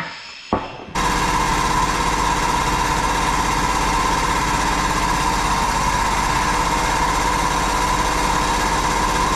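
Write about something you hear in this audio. A shop press hums steadily.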